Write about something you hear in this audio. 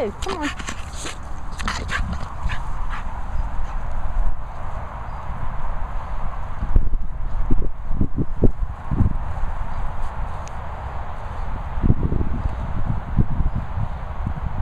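A dog sniffs and snorts close by.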